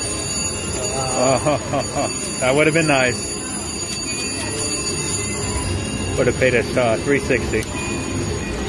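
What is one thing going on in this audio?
A slot machine plays bright electronic jingles.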